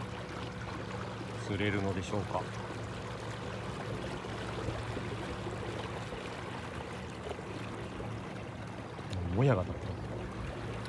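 Water laps gently.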